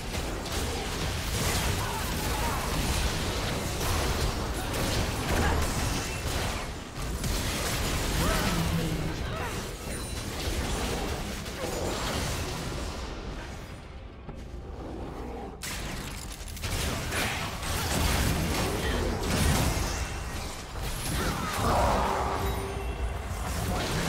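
Game spell effects whoosh and blast during a fight.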